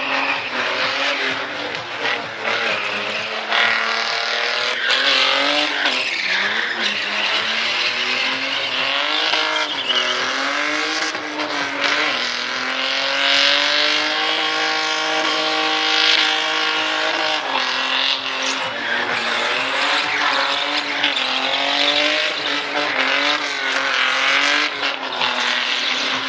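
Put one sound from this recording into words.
A car engine roars and revs hard, rising and falling.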